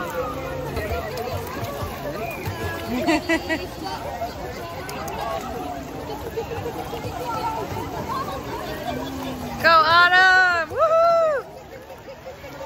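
Water splashes and sloshes as people move through it.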